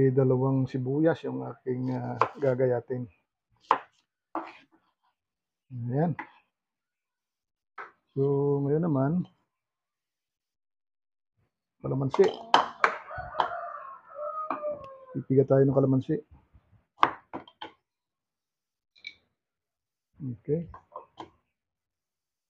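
A knife chops on a wooden board with sharp taps.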